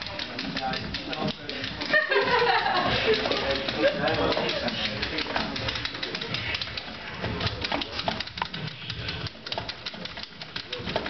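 Arcade buttons click and clatter rapidly.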